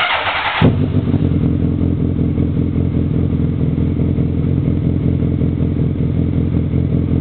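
A motorcycle engine starts with a bang and then idles with a loud, lumpy rumble close by.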